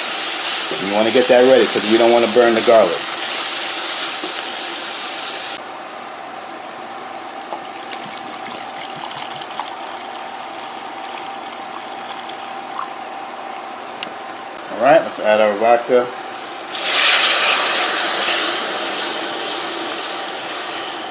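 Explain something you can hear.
Food sizzles loudly in a hot pan.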